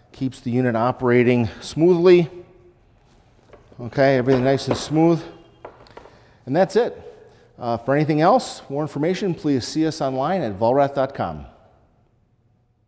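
A man speaks clearly and calmly into a clip-on microphone, close by.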